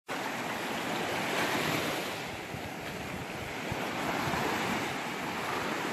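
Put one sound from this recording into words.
Small waves wash and break steadily onto a sandy shore.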